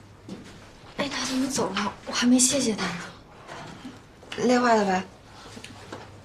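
A young woman asks a question in a puzzled tone.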